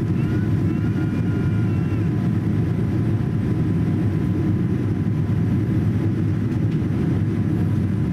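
A jet airliner's engines roar steadily with a deep, constant rumble inside the cabin.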